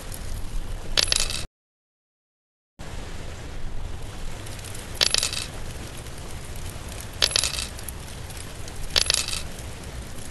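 A short bright game chime rings each time a reward is claimed.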